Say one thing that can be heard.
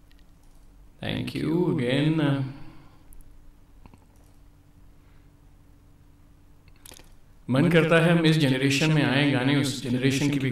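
A man speaks with animation into a microphone, heard over an online call.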